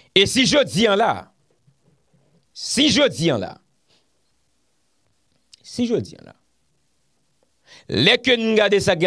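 A young man speaks with animation, close to a microphone, in short bursts with pauses.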